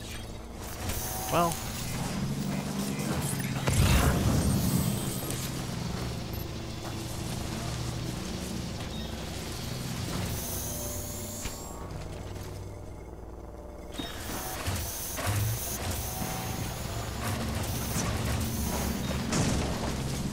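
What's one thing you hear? A motorbike engine hums steadily as it rides over rough ground.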